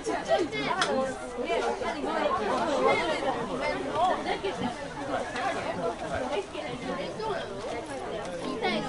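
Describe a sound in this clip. Young women shout and call to each other across an open field.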